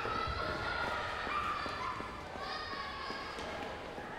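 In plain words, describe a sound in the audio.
Footsteps patter as children run down a ramp.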